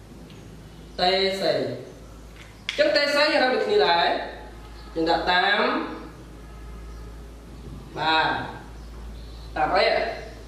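A man speaks calmly and clearly nearby, explaining in short phrases.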